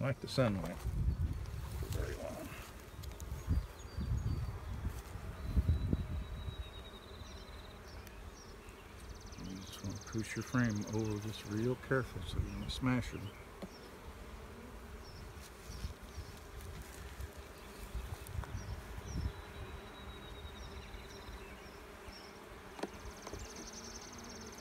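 Bees buzz steadily close by.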